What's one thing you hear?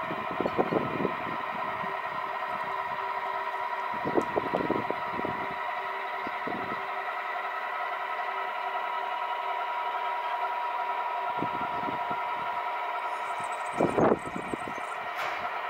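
A telescope mount's motors whir steadily as the mount slowly turns.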